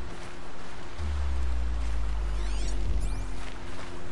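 A deep rumbling burst swells and fades.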